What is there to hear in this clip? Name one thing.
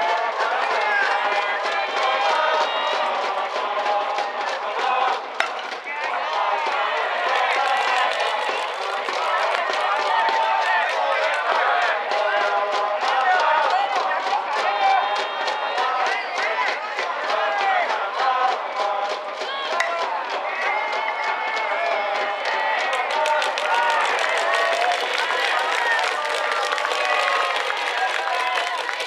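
A crowd of spectators chants and cheers loudly outdoors.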